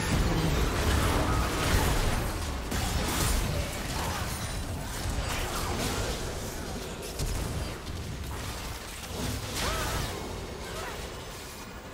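Magic blasts, whooshes and clashing hits burst in quick succession from a video game battle.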